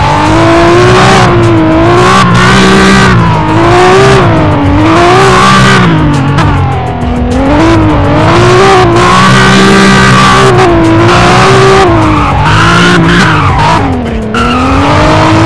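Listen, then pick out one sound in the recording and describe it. A car engine revs up and down loudly as gears shift.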